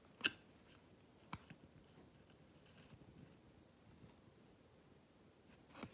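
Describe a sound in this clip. Fingers rustle and rub soft fabric close by.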